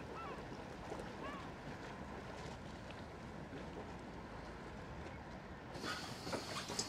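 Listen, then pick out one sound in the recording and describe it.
Gentle waves lap against rocks.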